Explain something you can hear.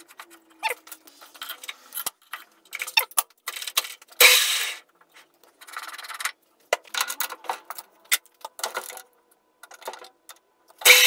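Metal parts clink and knock as a tool post is adjusted by hand.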